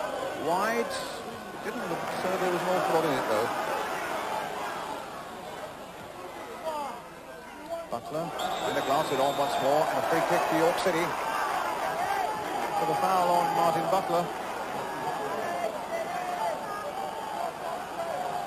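A large crowd roars and chants in a stadium.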